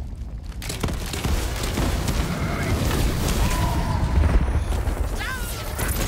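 Fiery explosions boom and crackle.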